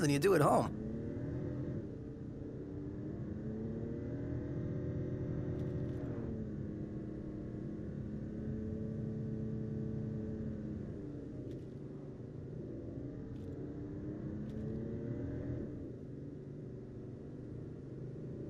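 A car engine hums steadily and rises and falls in pitch as the car drives.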